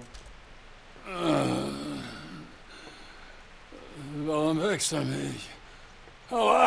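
A man groans and speaks drowsily, as if just woken.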